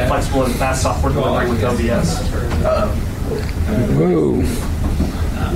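A man speaks steadily through a microphone in a large room.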